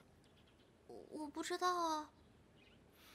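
A young girl answers softly close by.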